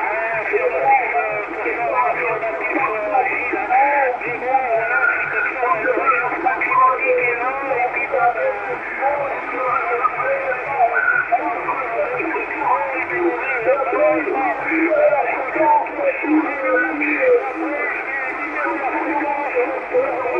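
A radio receiver plays thin, crackly sound through its small speaker.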